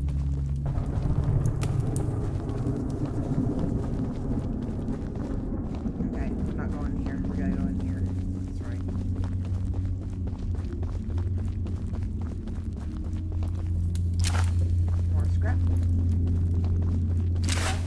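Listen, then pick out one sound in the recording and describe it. Footsteps shuffle across a hard floor.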